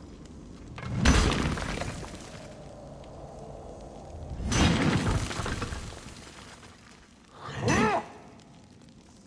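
A plaster wall is smashed and crumbles with heavy crashes.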